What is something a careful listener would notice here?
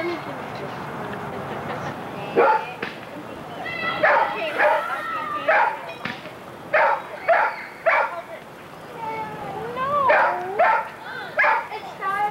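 Several people chatter outdoors.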